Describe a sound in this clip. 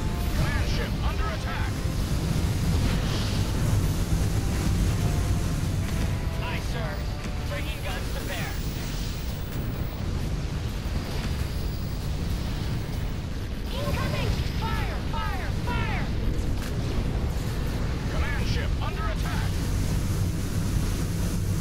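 Laser weapons fire in quick zapping bursts.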